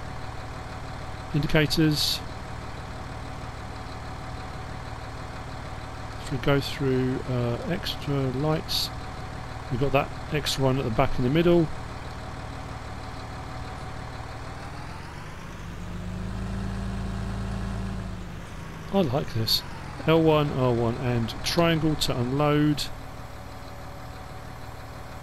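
A tractor engine hums steadily, rising in pitch as it revs up and then settling back.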